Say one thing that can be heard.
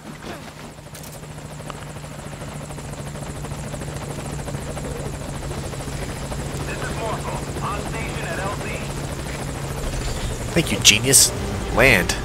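A helicopter's rotor thrums overhead.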